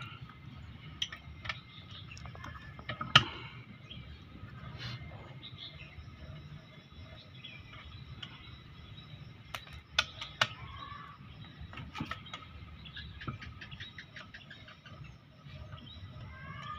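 Metal parts click and tap as hands work on a pump.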